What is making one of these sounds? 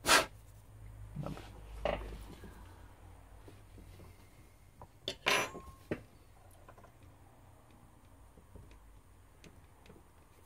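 Small plastic and metal parts click and tap as they are handled.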